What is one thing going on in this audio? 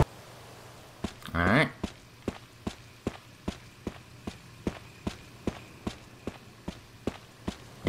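Footsteps run quickly and evenly across hard stone.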